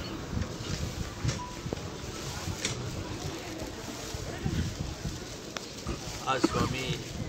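Several men talk and murmur nearby in a group.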